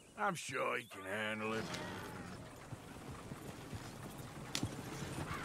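Wooden wagon wheels rumble and creak over a dirt track.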